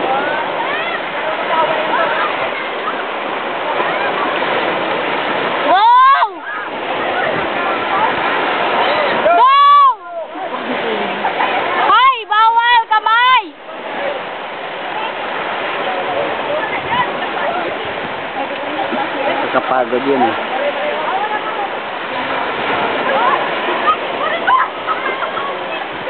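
Water splashes loudly as children kick and wade.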